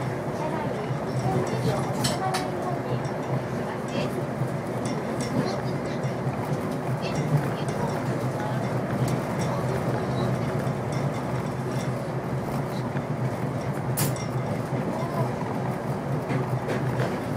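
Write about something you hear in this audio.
A train rumbles steadily along an elevated track.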